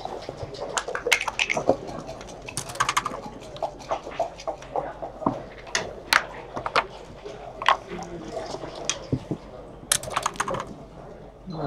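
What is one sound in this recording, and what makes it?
Dice rattle and clatter on a board.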